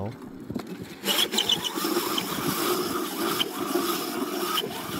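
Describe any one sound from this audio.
A small kart motor whirs as the kart drives past.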